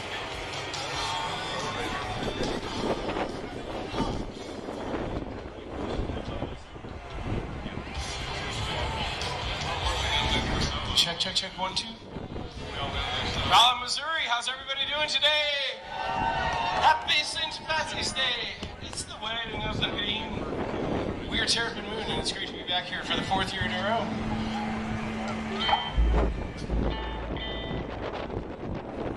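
A rock band plays electric guitars through loudspeakers outdoors, heard from a distance.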